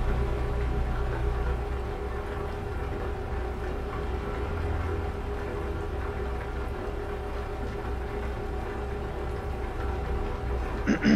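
A truck engine drones steadily at highway speed.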